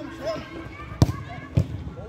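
A ball is kicked hard with a thud.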